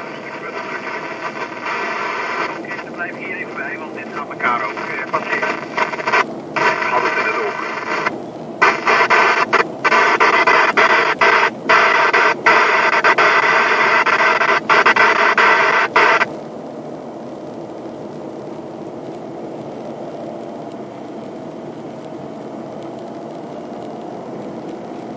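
Wind rushes and buffets loudly outdoors, then drops to a softer steady rush.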